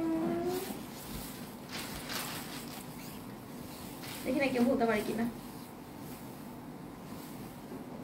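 Fabric rustles as a cloth is unfolded and handled.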